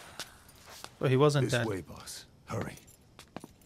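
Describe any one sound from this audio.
A man urges someone in a hushed, hurried voice.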